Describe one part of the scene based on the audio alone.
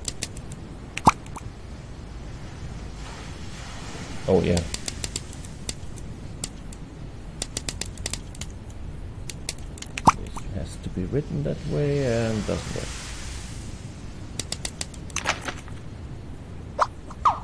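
Short, light clicks tick now and then as menu options are picked.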